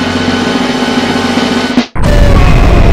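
A man speaks with animation to an audience.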